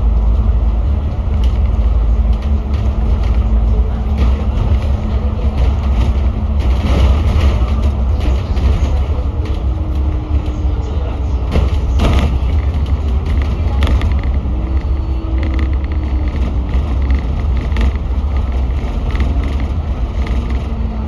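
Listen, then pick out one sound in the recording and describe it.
Traffic passes by on the road.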